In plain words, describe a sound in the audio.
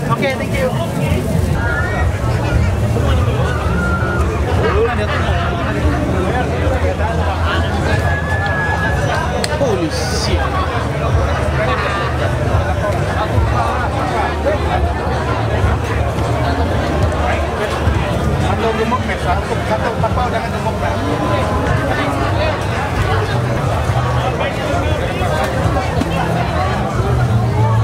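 A crowd chatters all around.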